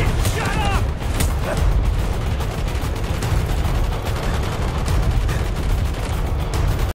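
Gunshots crack and boom nearby amid a low rumble.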